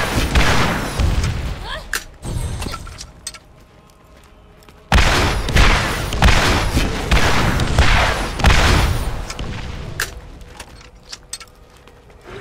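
A gun fires in sharp, heavy shots.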